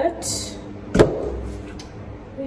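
A glass bottle clinks on a counter.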